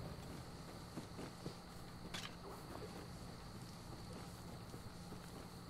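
Footsteps tap on wooden floorboards.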